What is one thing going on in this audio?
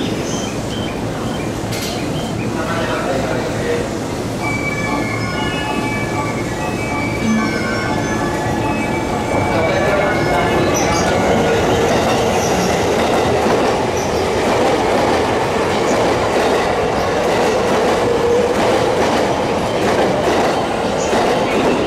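An electric train rolls along the tracks with a steady rumble that grows louder.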